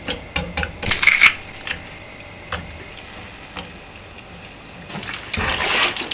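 Chopsticks clink against a metal pot.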